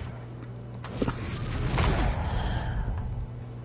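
Heavy blows land in a scuffle.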